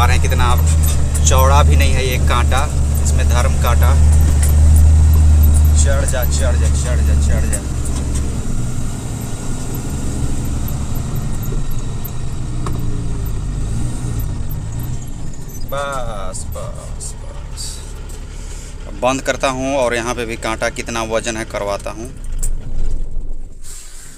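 A heavy engine rumbles deeply.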